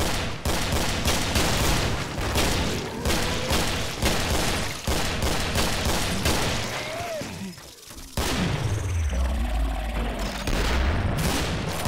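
Monsters snarl and shriek close by.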